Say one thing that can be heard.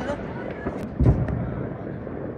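A firework bursts in the distance with a deep boom.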